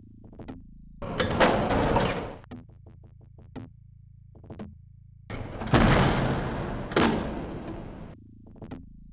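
A heavy metal door slides open with a rumbling hiss.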